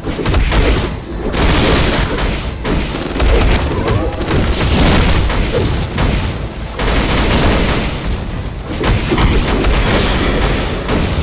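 Heavy punches and blasts thud and crash in a fast fight.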